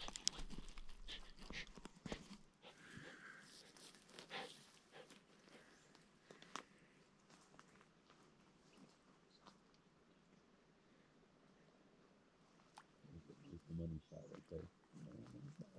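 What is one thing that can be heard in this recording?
Ducks quack softly on the water nearby.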